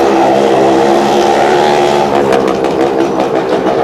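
A motorcycle engine whines as it rides around the wall.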